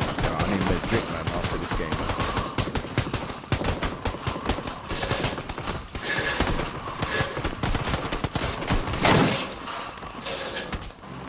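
Many footsteps patter quickly on hard ground.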